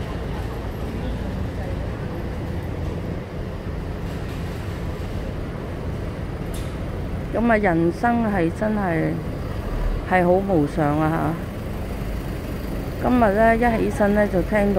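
Street traffic hums steadily in the distance.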